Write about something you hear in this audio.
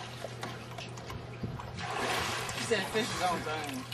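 A dog splashes into a swimming pool.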